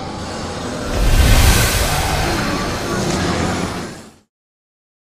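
A crowd groans and shuffles.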